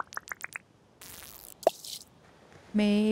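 A fishing float plops into water.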